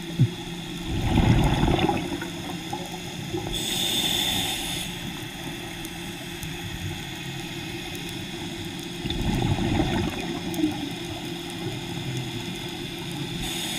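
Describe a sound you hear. Muffled underwater noise rushes steadily close by.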